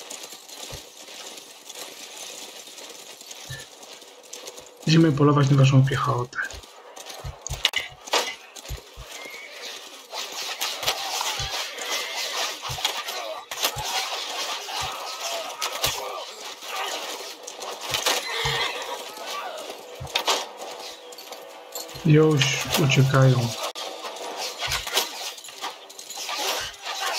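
Weapons clash and horses trample in a noisy battle.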